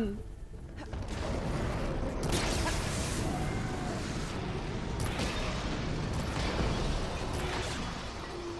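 Fire roars and bursts in blasts.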